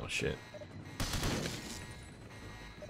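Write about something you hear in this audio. A pistol fires several shots.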